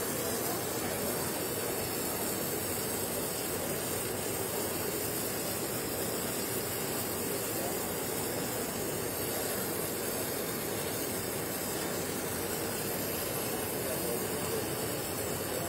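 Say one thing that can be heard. A welding arc hisses and crackles steadily.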